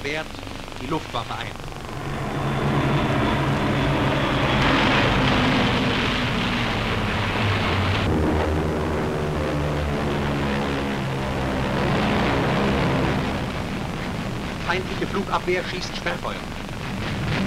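Aircraft engines drone steadily overhead.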